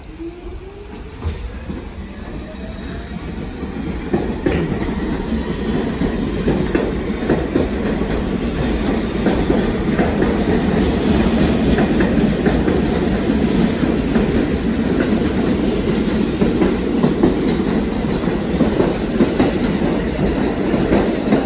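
Train wheels rumble and clatter loudly on the rails.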